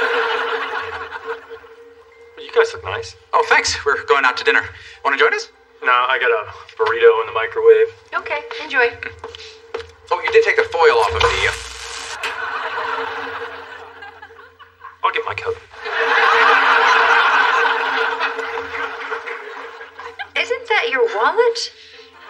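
A woman speaks.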